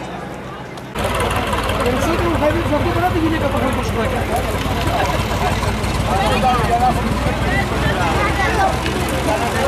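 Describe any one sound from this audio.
A tractor engine idles with a low rumble.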